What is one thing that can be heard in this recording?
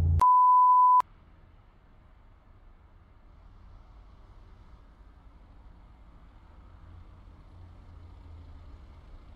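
A truck engine idles and grows louder as the truck approaches.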